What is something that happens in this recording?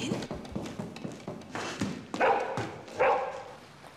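Footsteps and paws patter quickly across a hard floor indoors.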